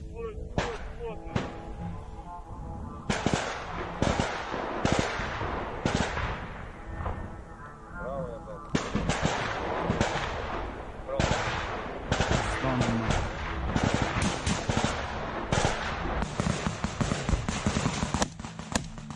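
Rifle shots crack in quick bursts close by, outdoors.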